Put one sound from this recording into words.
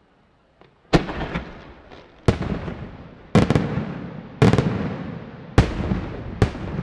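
Fireworks crackle and sizzle after each bang.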